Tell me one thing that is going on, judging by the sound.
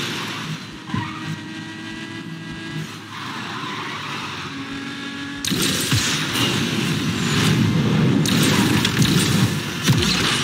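A racing car engine roars loudly in a video game.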